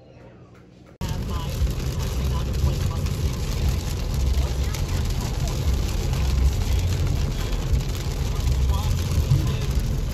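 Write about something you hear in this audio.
A car drives along a wet road with a steady low rumble.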